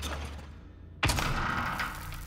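Heavy doors bang open with a loud crash.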